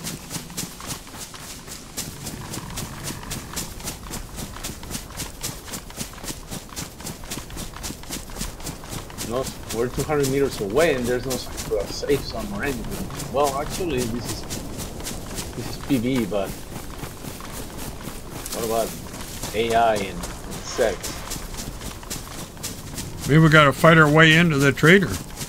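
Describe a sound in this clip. Quick footsteps rustle steadily through grass and undergrowth.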